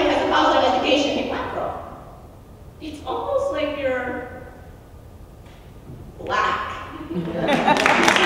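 A young woman speaks into a microphone in a calm, clear voice.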